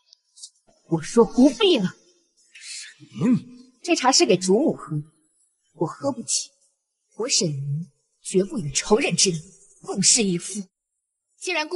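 A young woman speaks firmly and coldly, close by.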